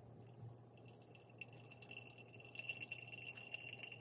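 Hot water trickles onto coffee grounds.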